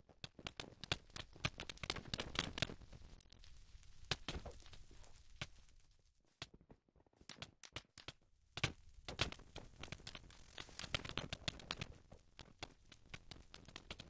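Fire crackles and hisses nearby.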